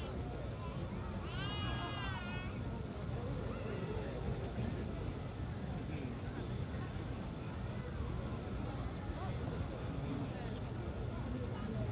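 Fireworks boom in the distance.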